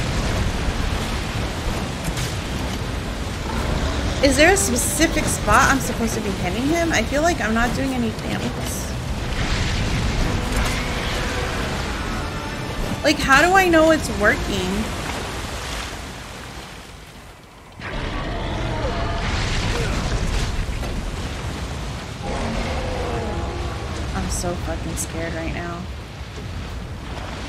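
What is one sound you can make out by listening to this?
Water splashes and churns around a small boat.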